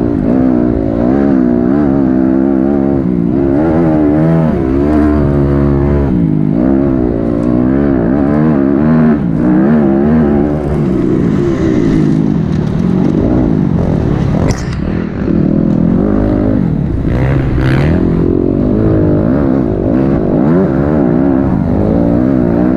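A dirt bike engine revs loudly up close, rising and falling as gears change.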